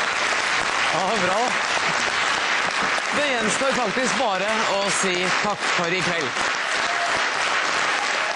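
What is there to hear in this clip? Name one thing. A middle-aged woman speaks warmly into a microphone.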